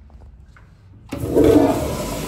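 A flush lever clicks as it is pressed.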